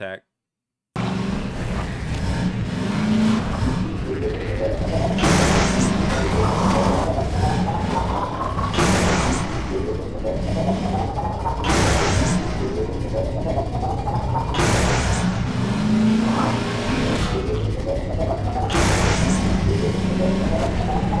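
A buggy engine revs up again and again.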